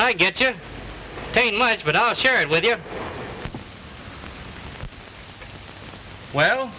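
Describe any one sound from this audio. A man speaks loudly and emphatically, close by.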